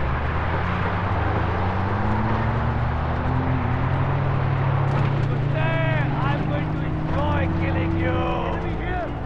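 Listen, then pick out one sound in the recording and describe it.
A car engine roars steadily while driving.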